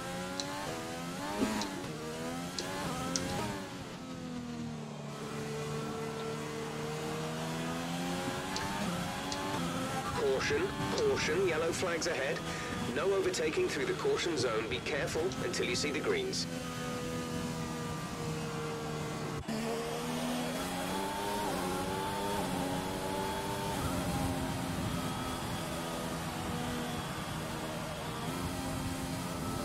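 A racing car engine whines and rises and falls in pitch as it shifts gears.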